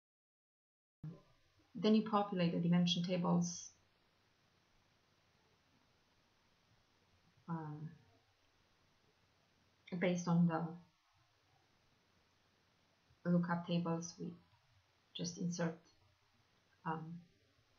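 A young woman speaks calmly into a close microphone, with pauses.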